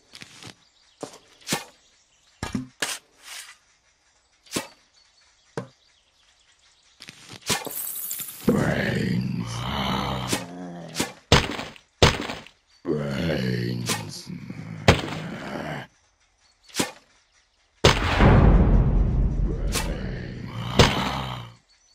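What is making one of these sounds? Melons land with soft thuds, again and again.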